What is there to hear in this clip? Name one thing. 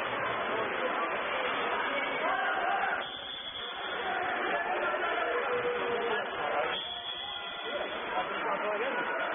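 Several young men shout and call out across the echoing pool.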